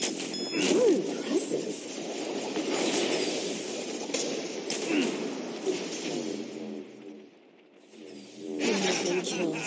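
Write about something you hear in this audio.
Magic blasts and explosions crackle in a fast video game battle.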